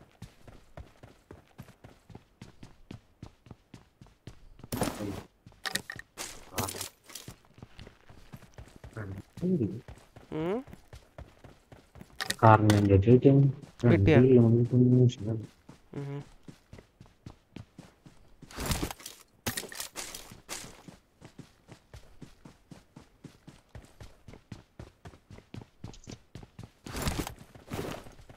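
Footsteps patter quickly and steadily on hard ground and grass.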